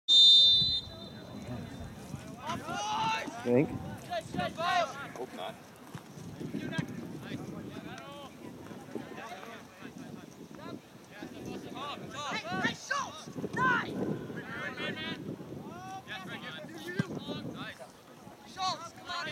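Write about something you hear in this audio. Young players shout and call to each other across an open field, heard from a distance.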